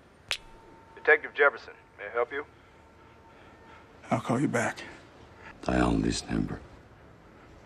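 A man speaks quietly and close, in a low voice.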